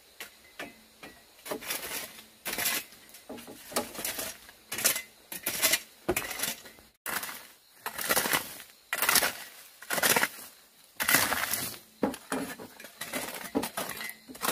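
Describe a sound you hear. A hoe scrapes and scratches through dry leaves and dirt in repeated strokes.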